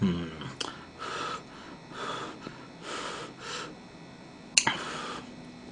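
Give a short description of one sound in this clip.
A young woman chews and slurps food noisily close to a microphone.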